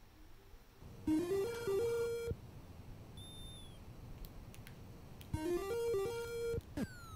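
Short electronic game jingles play in bleeping tones.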